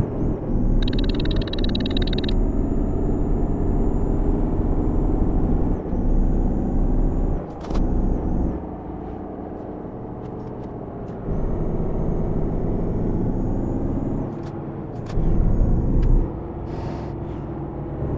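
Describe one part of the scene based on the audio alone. A truck engine drones steadily as it drives along a road.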